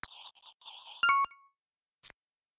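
A handheld game's chime rings for a correct answer.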